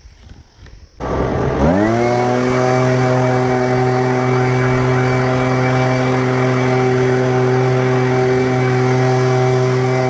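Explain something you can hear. A leaf blower motor starts up, revs and runs with a steady loud whine.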